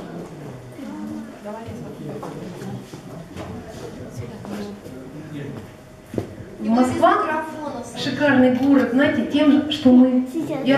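A young woman sings through a microphone, softly at first and then loudly.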